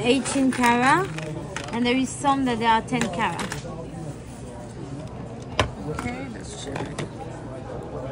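Metal jewellery clinks against a plastic tray.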